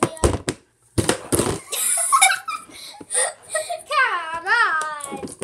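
Young girls laugh loudly close by.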